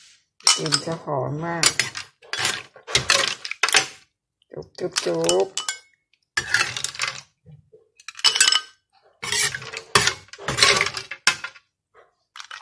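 Snail shells clatter into a bowl.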